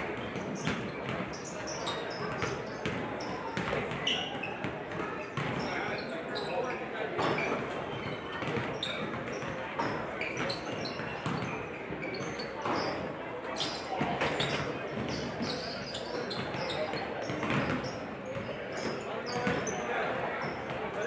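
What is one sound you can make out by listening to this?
Basketballs bounce repeatedly on a wooden court in a large echoing gym.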